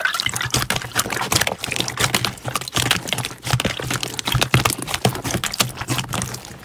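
Water sloshes and splashes in a tub.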